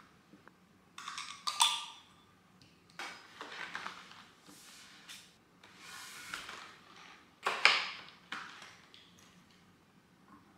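A plastic case rattles and crinkles as it is handled.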